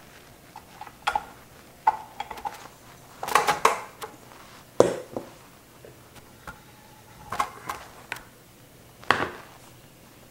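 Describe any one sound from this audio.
A metal mixing bowl clanks and knocks as it is lifted from a stand mixer.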